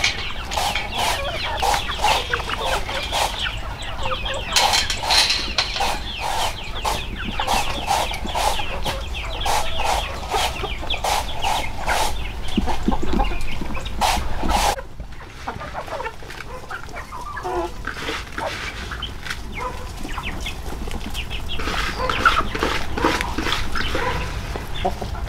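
Chickens cluck and chatter close by.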